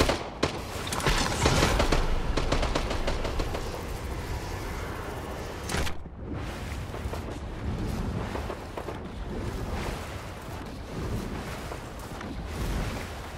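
A storm wind roars and hisses.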